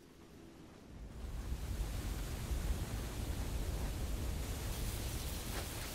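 Rain falls steadily with a hissing patter.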